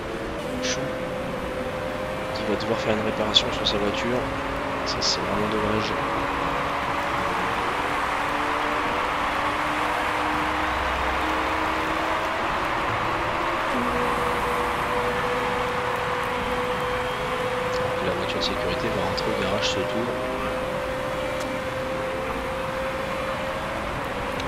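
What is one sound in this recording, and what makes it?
Racing car engines drone and whine, rising and falling in pitch as cars pass.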